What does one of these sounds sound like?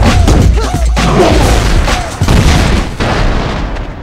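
Heavy punches land with loud, thudding blows.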